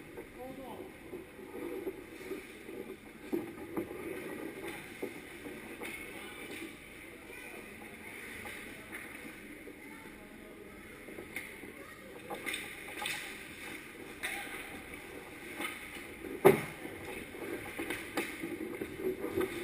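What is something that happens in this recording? Ice skates scrape and hiss across the ice in a large echoing hall.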